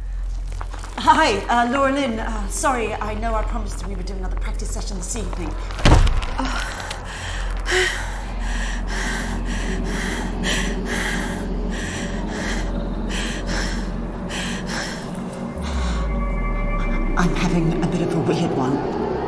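A young woman speaks hesitantly over an online call.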